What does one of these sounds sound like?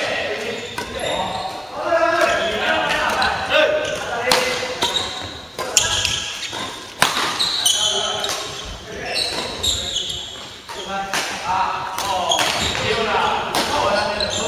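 Rackets smack a shuttlecock in sharp, quick hits.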